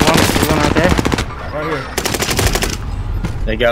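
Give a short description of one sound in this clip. Rapid gunshots crack loudly.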